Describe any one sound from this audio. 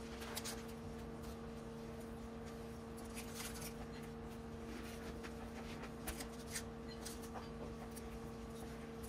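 A metal scoop clicks and scrapes against a muffin tin.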